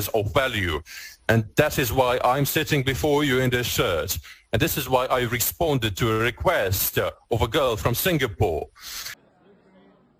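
A man speaks calmly and firmly into a microphone, up close.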